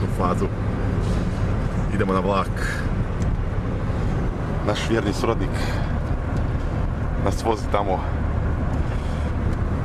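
A car engine hums steadily while driving on a road.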